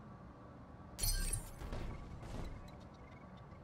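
Explosions boom one after another, then die away.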